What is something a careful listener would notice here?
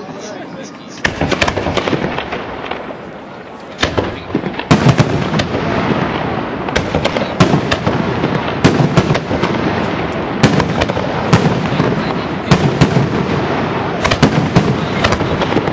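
Fireworks boom and bang in rapid bursts.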